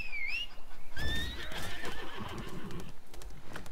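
A horse gallops over grass.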